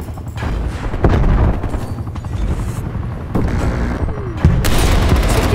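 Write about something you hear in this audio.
A sniper rifle fires a single sharp shot.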